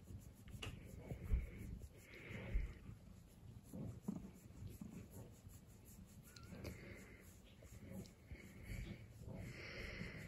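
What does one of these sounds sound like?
A cat purrs loudly close by.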